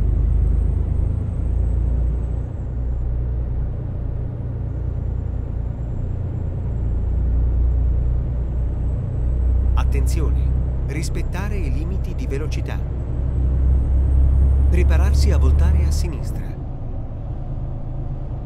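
A truck engine hums steadily as the truck drives along a road.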